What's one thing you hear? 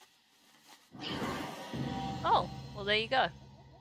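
A magic spell whooshes and hums.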